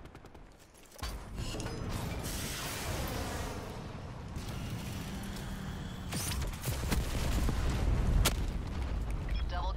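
Missiles roar down and explode with heavy booms.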